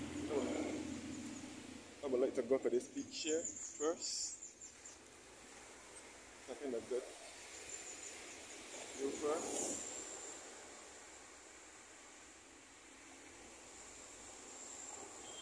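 Waves wash onto a beach.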